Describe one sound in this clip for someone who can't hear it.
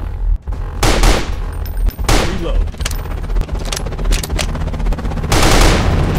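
A weapon clicks and clanks as it is reloaded.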